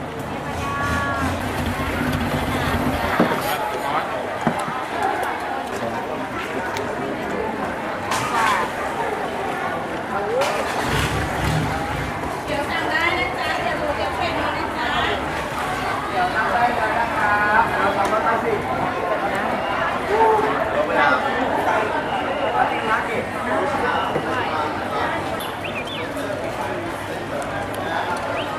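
Many people chatter around in a busy crowd.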